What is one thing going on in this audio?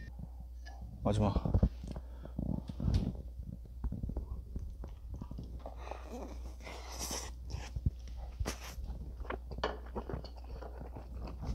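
A young man slurps and chews food up close.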